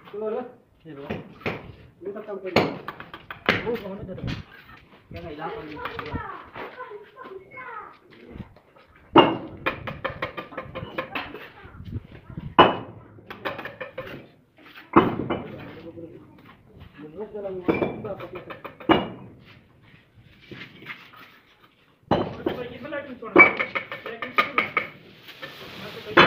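A trowel scrapes and taps on bricks and mortar.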